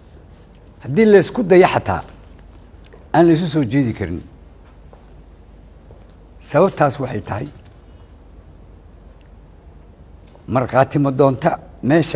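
A middle-aged man speaks formally into a microphone, in short phrases with pauses.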